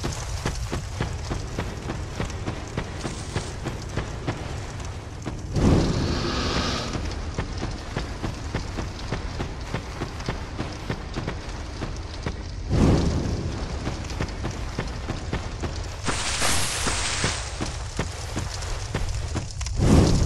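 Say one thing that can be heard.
Footsteps crunch steadily over dry ground.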